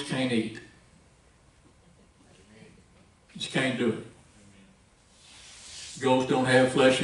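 A man speaks slowly and calmly through a microphone, with pauses.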